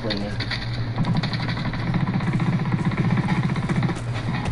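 Rapid gunfire rattles steadily.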